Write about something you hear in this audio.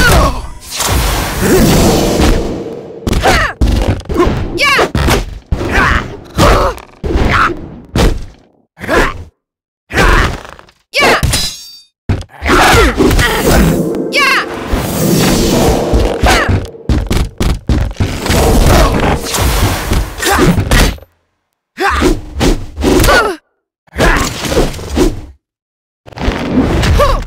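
Swords clash and clang in quick bursts.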